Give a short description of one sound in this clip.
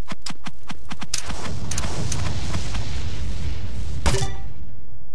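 A burst of rushing noise swells and cuts off with a loud crash.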